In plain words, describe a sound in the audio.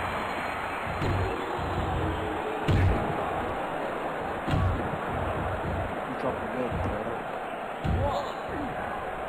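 Heavy thuds sound as bodies slam onto a wrestling ring mat.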